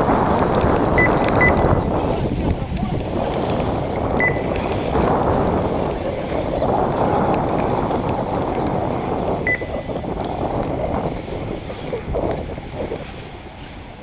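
Wind gusts roughly across the microphone outdoors, then dies down.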